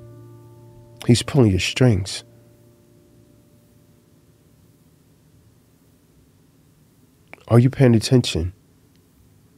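A man speaks calmly and closely into a microphone, in short phrases with pauses.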